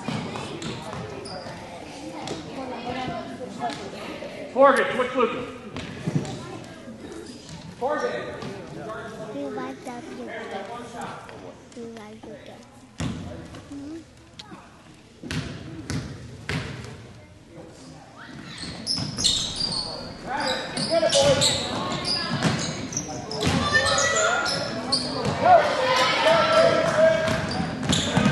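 Spectators nearby chatter and cheer in a large echoing gym.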